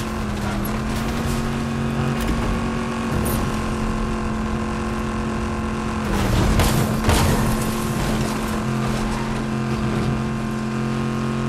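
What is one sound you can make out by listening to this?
A game vehicle's engine hums steadily.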